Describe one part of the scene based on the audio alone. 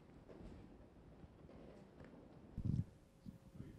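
An audience laughs softly.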